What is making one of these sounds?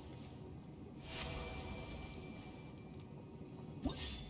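A chime sounds.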